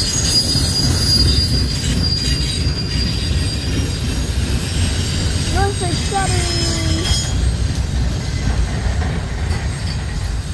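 Freight train cars rumble and clatter past close by.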